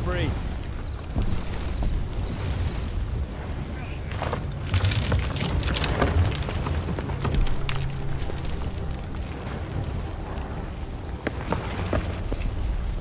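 Gunfire and explosions boom in the distance.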